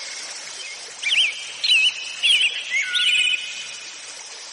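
Birds chirp and whistle nearby.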